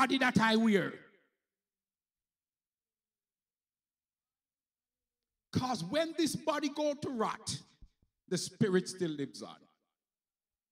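A man preaches with animation into a microphone.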